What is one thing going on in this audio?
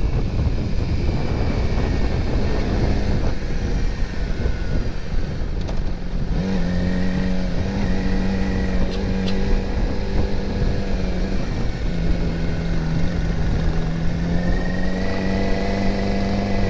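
A motorcycle engine hums steadily, rising and falling in pitch as it rides.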